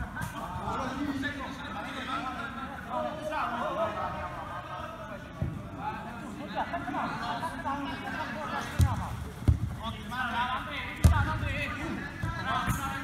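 Several young men shout and call out to each other across an open pitch.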